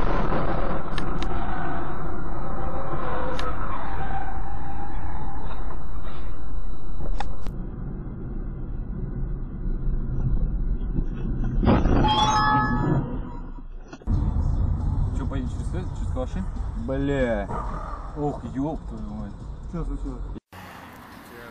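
A car engine hums steadily from inside as the car drives along a road.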